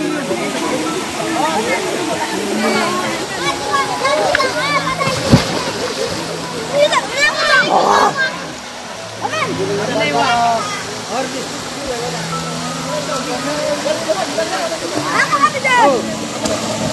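Children and young people shout, call and laugh excitedly nearby, outdoors.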